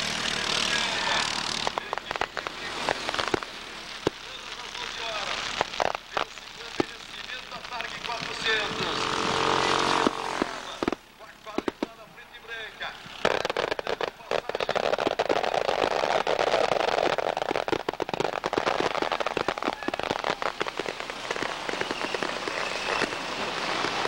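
Kart engines buzz and whine as karts race past.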